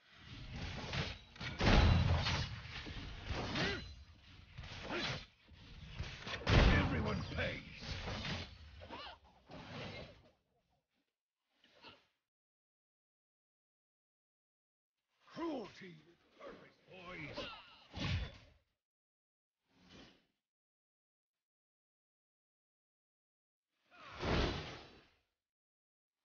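Game sound effects of spells and attacks burst and clash in short spurts.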